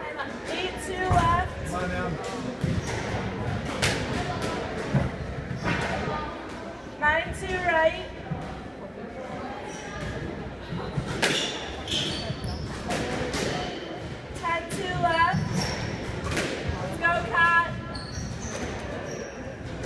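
A squash ball smacks sharply against the walls in a rally.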